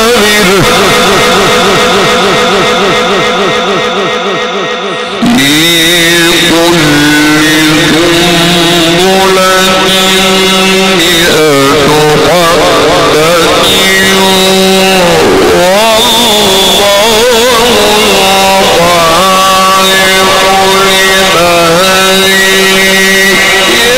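A man chants in a long, drawn-out melodic voice close to a microphone, with echo.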